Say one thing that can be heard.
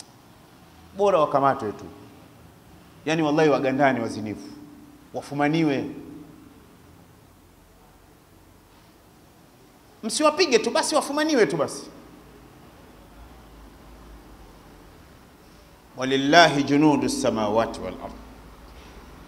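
An elderly man speaks calmly into a close microphone, in short bursts with pauses.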